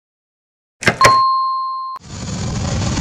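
A button beeps with a steady electronic tone.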